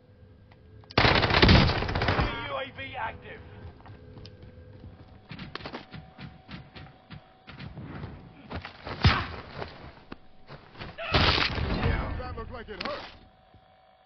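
A rifle fires loud, rapid bursts of shots.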